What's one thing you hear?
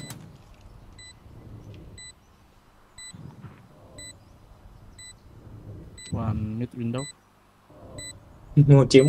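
An electronic beep repeats at a steady pace.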